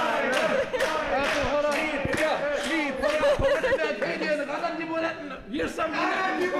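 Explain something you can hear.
A group of people clap their hands in a steady rhythm.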